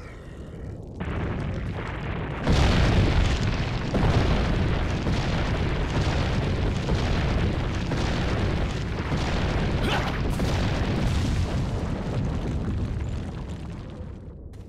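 A huge boulder rolls and rumbles heavily close by.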